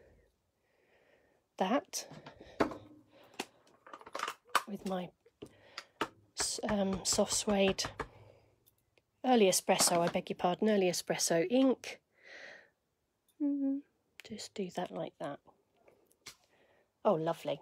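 A plastic stamp block taps and clacks on a table.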